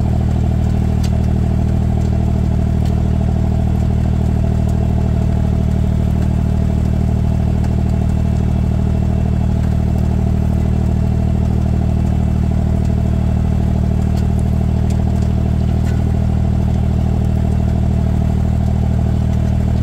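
A small engine runs steadily and loudly close by.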